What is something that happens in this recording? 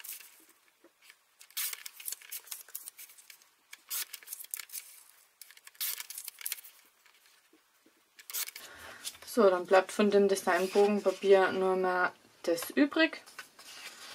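Paper slides and rustles under a hand.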